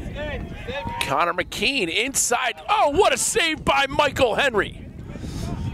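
Young men shout loudly outdoors.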